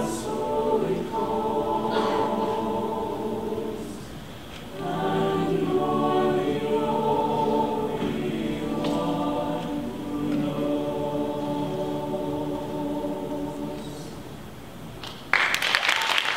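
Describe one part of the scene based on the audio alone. A choir of young men and women sings together in a large hall.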